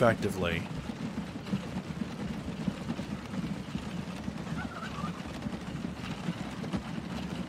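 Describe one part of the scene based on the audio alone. Tram wheels rumble along rails.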